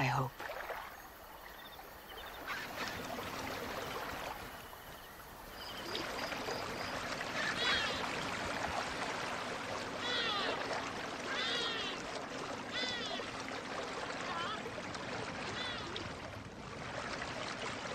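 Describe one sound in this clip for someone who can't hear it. Water splashes and laps as a boat is poled along.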